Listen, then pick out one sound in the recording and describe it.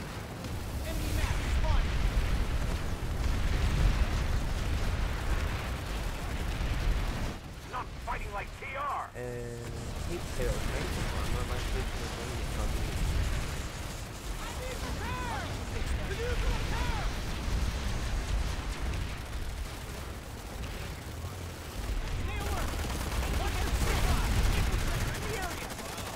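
A heavy gun fires in bursts.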